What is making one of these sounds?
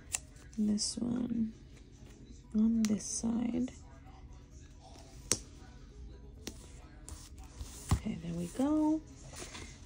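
Fingers rub and tap on a paper page.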